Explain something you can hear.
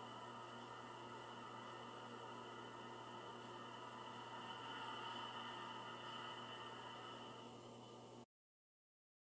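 A small helicopter's rotors whir and hum steadily.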